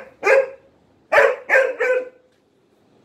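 A dog barks sharply nearby a few times.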